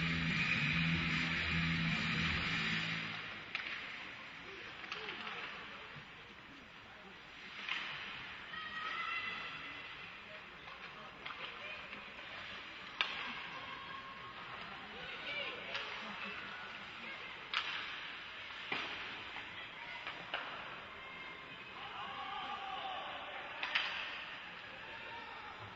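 Skates scrape across the ice.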